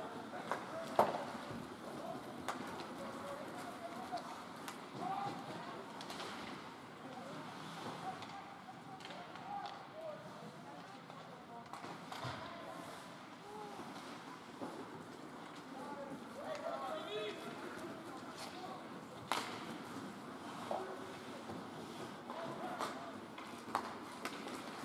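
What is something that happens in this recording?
Hockey sticks clack against a puck in a large echoing hall.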